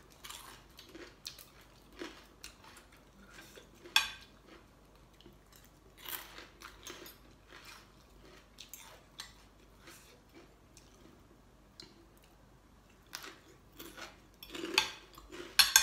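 A woman chews food with soft smacking sounds.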